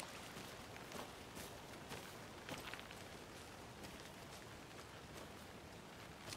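Footsteps crunch slowly through dry leaves and undergrowth.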